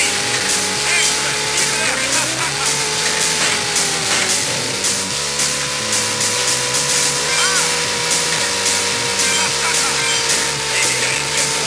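A video game car engine hums steadily at high speed.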